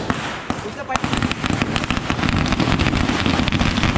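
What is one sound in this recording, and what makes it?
A firework fountain hisses and crackles close by.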